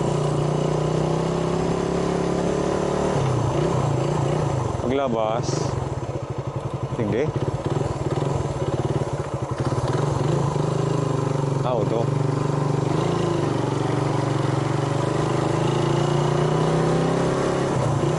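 A motorbike engine hums steadily up close as it rides along.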